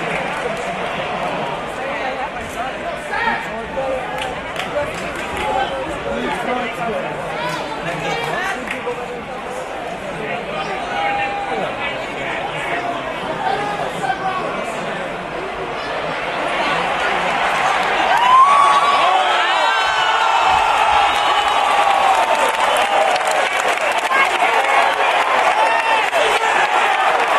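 A large crowd cheers and chatters in a big echoing arena, growing louder near the end.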